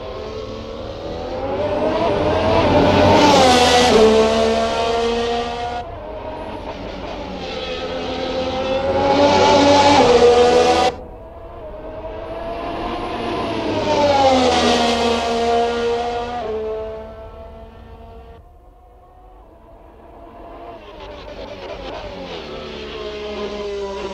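A racing car engine screams past at high speed, its pitch rising and falling as it passes by again and again.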